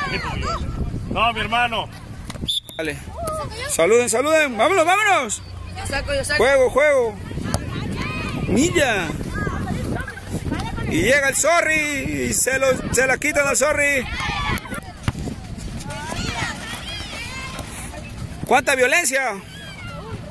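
Young boys shout and call out excitedly outdoors.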